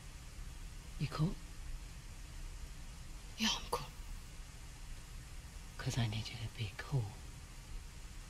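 A young woman speaks quietly and closely.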